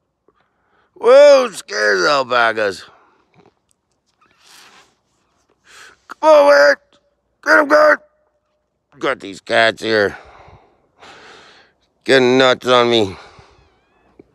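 A donkey brays loudly in repeated bursts.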